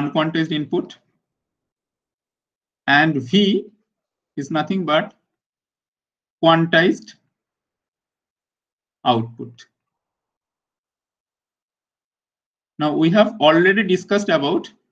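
A man explains calmly through a microphone, in short phrases with pauses.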